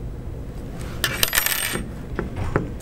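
A thin plastic tube rustles and scrapes as it is bent.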